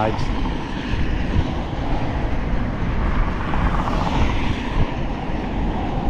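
A car passes on a nearby road.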